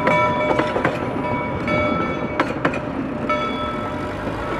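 A railway carriage rolls along the tracks with squealing wheels.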